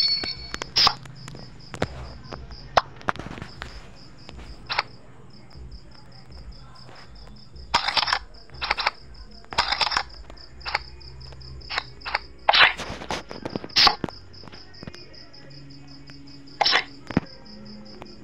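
Playing cards snap and click as they are played.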